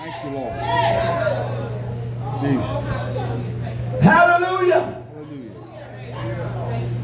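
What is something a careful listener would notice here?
A man speaks with animation through a microphone and loudspeakers in an echoing hall.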